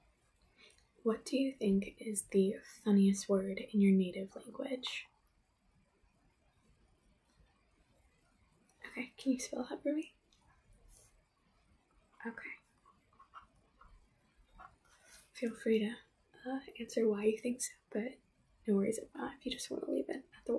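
A young woman speaks calmly and close to the microphone, in short bursts with pauses.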